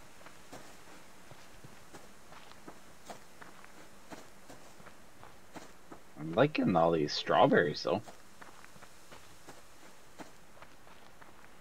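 Footsteps crunch through grass at a steady walking pace.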